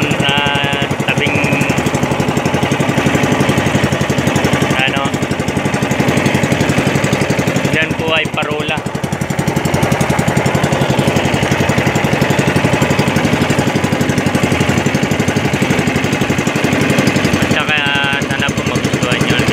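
A small boat engine chugs steadily and loudly.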